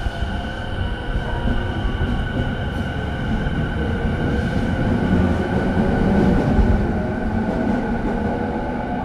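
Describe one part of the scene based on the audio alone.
An electric train hums steadily while standing still.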